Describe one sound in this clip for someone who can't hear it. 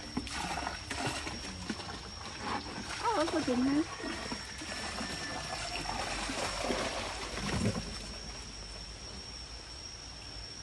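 Water splashes and gushes out of a bag into a pond.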